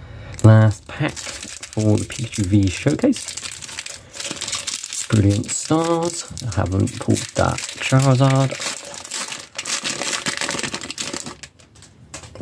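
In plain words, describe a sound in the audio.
A foil wrapper crinkles and rustles as it is torn open and handled.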